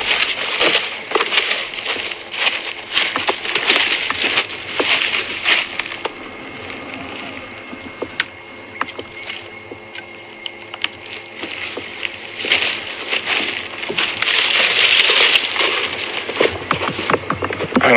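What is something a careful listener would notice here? Footsteps crunch through dry brush and leaves.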